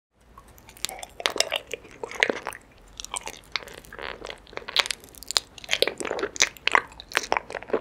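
Wax and honey squish and click wetly as a young woman chews up close.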